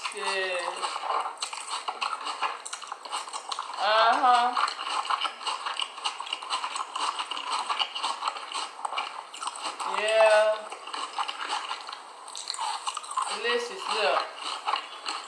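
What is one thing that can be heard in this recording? A woman speaks close to a microphone.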